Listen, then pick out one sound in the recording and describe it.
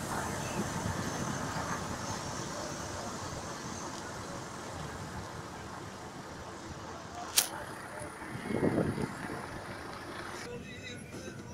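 A car drives along a rough road with a steady rumble.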